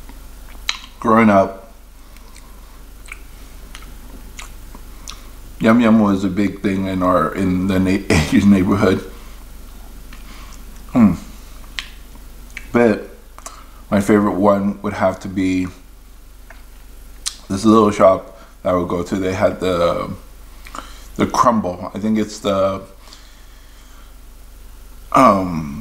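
A young man speaks calmly and close to the microphone, in short bursts with pauses.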